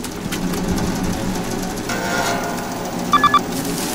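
Plastic sheeting rustles and crinkles.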